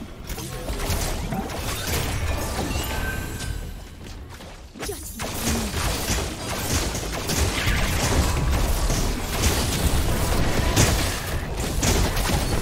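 Weapon strikes clash and thud during a fight.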